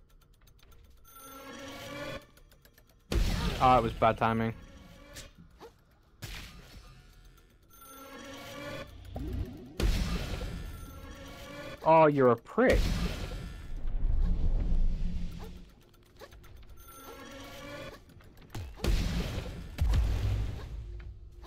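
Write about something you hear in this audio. Magical blasts whoosh and boom in short bursts.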